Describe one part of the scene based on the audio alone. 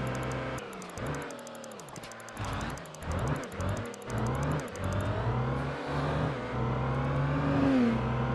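A truck engine rumbles steadily, its pitch rising and dropping as it shifts gears.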